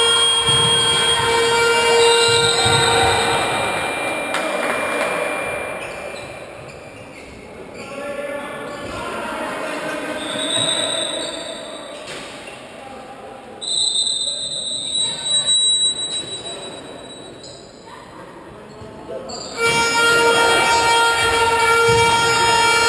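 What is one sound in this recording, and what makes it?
Sneakers squeak on a hard court.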